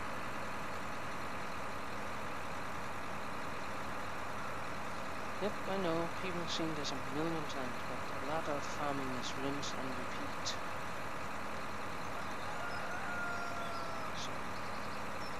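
A tractor engine drones steadily as it pulls a loaded trailer.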